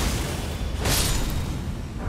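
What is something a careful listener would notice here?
Fire crackles and bursts in sparks.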